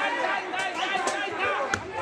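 A young man shouts angrily up close.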